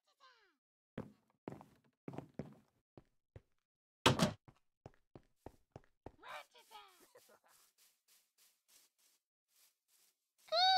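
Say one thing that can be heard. Footsteps tap on a wooden floor and then on stone.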